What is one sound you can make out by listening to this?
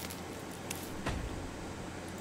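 A heavy wooden piece thuds into place.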